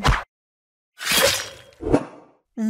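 A sword swishes through the air with a sharp metallic ring.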